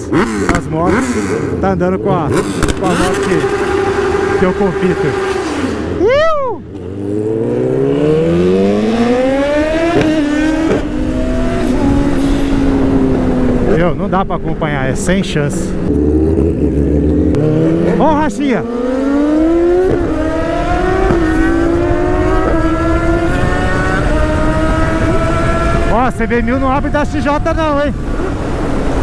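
A motorcycle engine revs loudly, rising and falling through the gears.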